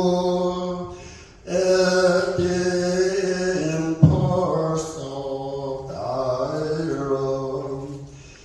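A man sings slowly through a microphone.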